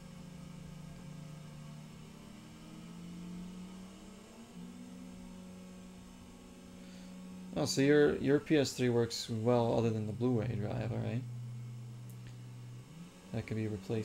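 A game car engine drones steadily.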